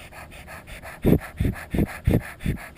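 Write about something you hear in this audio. A dog licks and mouths at the microphone with loud thumps.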